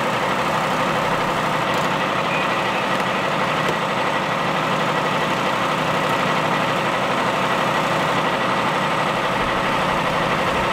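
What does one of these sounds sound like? A hydraulic rescue tool hums and whines steadily close by.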